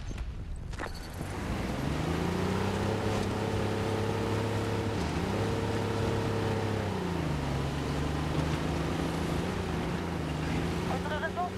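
A tank engine roars and rumbles, rising and falling in pitch as it drives.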